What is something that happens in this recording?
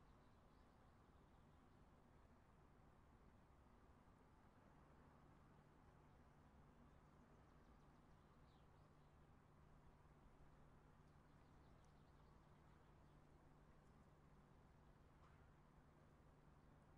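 A train's engine hums low and steadily while standing still.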